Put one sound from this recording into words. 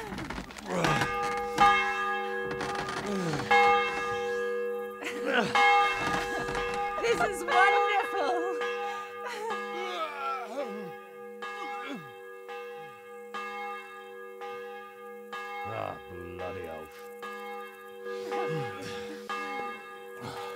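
A large bell rings loudly, its strokes ringing on and echoing.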